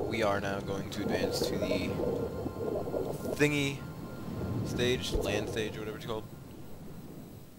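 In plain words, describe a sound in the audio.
Water bubbles and gurgles, muffled as if underwater.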